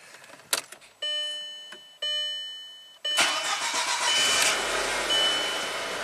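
A car's warning chime beeps several times.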